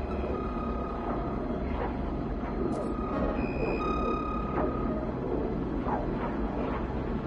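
A spaceship's engine roars steadily at high speed.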